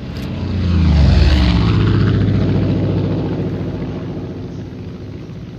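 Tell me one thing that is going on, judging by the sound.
A propeller plane's engine drones overhead and slowly fades.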